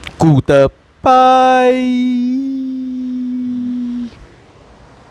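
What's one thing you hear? A young man sings a long, steady note close by.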